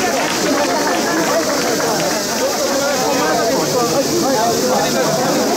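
A large crowd of men chants and shouts loudly in unison outdoors.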